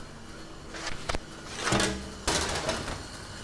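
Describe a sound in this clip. A metal baking tray clatters.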